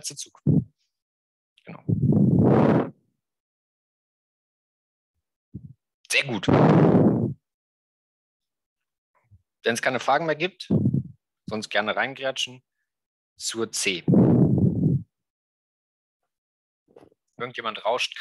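A young man speaks calmly through a microphone in an online call, in short bursts with pauses.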